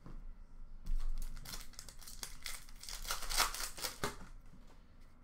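Cards rustle and shuffle as a hand sorts through them.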